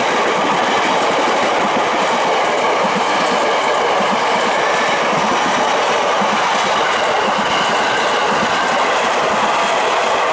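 A passing train roars loudly close by.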